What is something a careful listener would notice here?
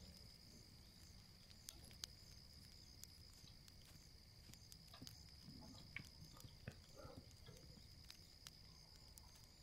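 Footsteps rustle softly through grass.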